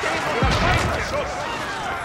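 A blast booms with a low thud.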